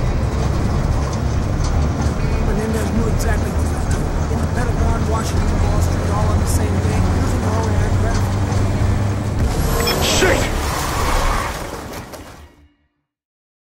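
A heavy vehicle engine rumbles steadily up close.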